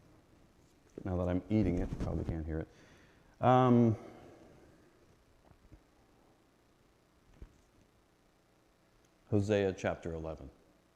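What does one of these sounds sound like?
A middle-aged man speaks through a microphone in a reverberant hall, pausing between phrases.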